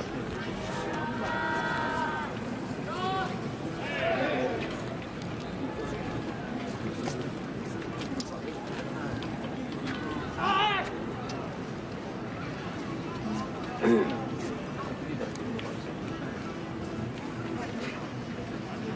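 A crowd of spectators murmurs and calls out outdoors at a distance.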